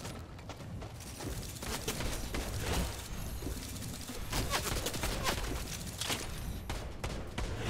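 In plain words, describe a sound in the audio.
Rapid ticks and chimes sound as a points score tallies up.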